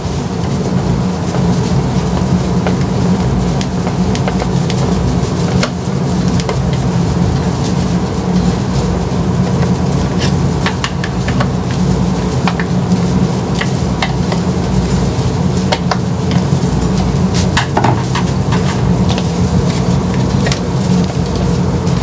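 A plastic casing clicks and rattles as hands turn it over.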